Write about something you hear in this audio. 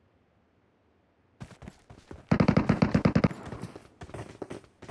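Footsteps patter on hard ground in a game.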